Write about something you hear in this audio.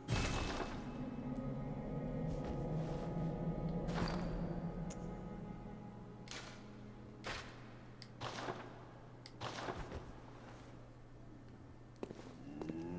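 Footsteps climb stone stairs.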